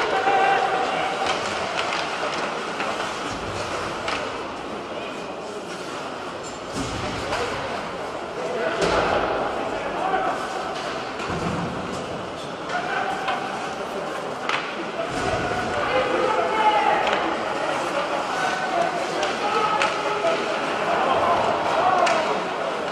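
A crowd murmurs and cheers in a large echoing arena.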